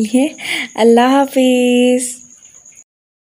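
A young woman speaks cheerfully and close, drawing out her last word.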